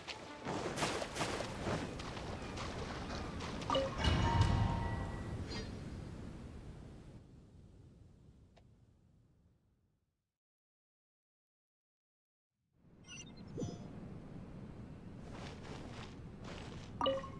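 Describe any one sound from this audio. Video game sound effects and music play, then fall silent before starting again.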